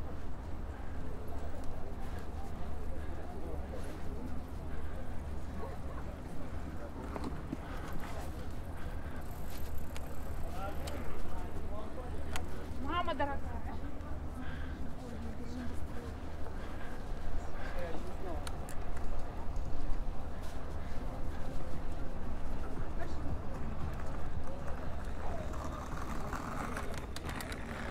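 A bicycle rattles and hums over the pavement.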